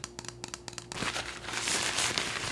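Paper wrapping crinkles in hands.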